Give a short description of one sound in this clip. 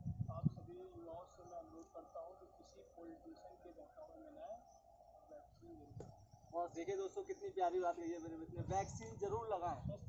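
Several young men talk with each other outdoors, close by.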